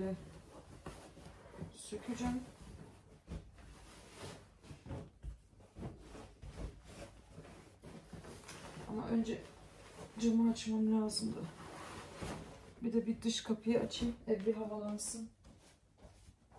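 Bedding rustles and flaps as it is shaken and spread.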